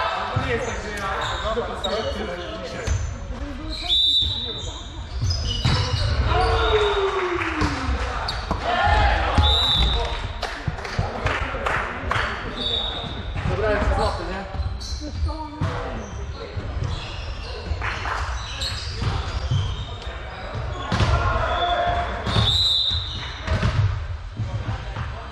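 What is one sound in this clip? Men and women players call out to each other in a large echoing hall.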